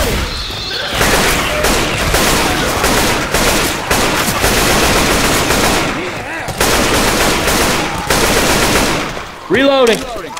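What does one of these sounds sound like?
An assault rifle fires in loud rapid bursts.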